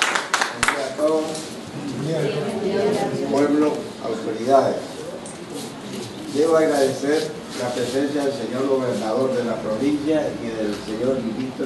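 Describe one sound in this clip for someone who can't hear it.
An older man speaks calmly into a microphone over a loudspeaker.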